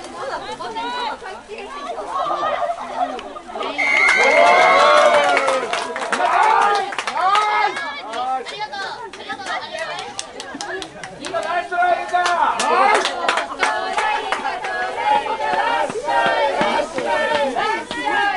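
Young women shout and call to each other across an open outdoor field.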